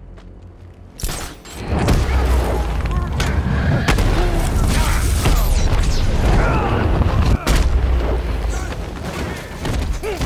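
Punches and kicks land in a brawl with heavy thuds.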